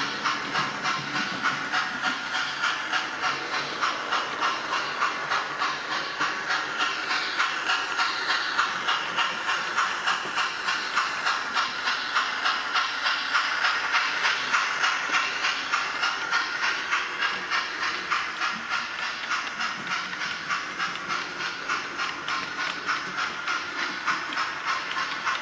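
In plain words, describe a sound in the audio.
A model train's wheels clatter rhythmically over rail joints.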